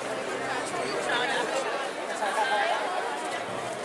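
People in a crowd call out and shout nearby.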